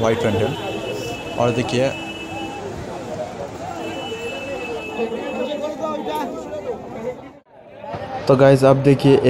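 Men talk nearby in a busy crowd.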